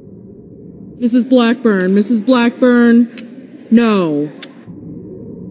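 A woman calls out loudly through a microphone in a large room.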